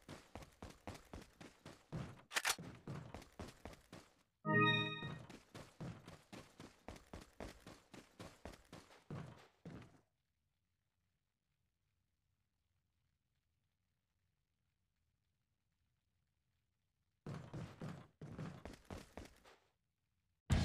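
Footsteps run quickly over stone and wooden boards.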